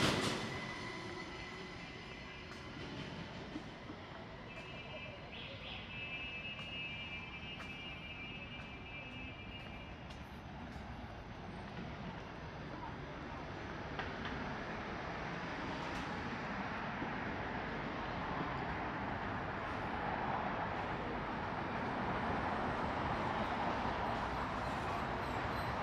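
City traffic hums steadily in the distance and grows louder.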